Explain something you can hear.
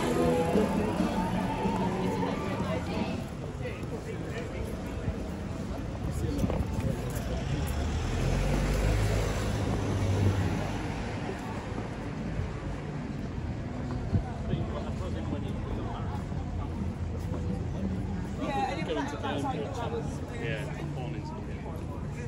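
Nearby men and women talk casually.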